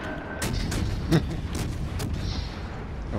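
Heavy naval guns fire with deep booms.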